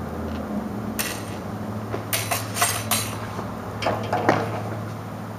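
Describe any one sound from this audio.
Swords clash and clatter sharply several times.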